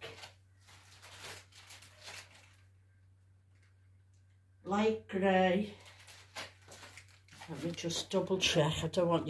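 Paper rustles in an elderly woman's hands.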